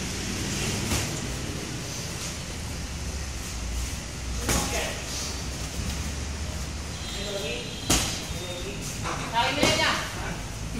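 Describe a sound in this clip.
Boxing gloves thump against pads and headgear in sharp blows.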